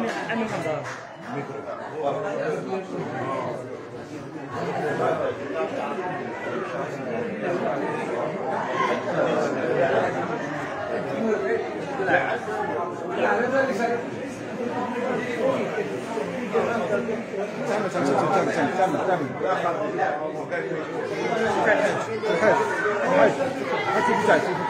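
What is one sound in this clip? Several men talk over one another in a lively, echoing room.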